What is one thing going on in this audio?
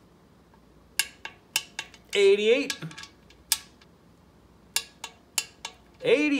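A ratchet wrench clicks as a bolt is tightened.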